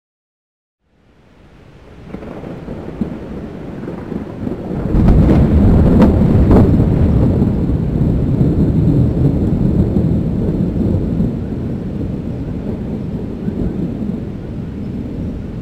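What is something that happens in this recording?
Thunder rumbles deeply, swelling to a loud roll and then slowly easing off.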